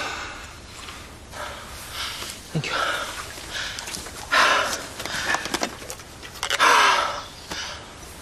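A man speaks in a strained, breathless voice nearby.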